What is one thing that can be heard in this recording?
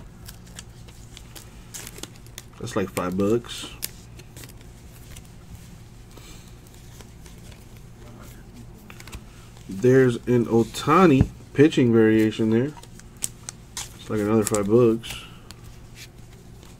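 Stiff paper cards rustle and click softly as they are shuffled by hand.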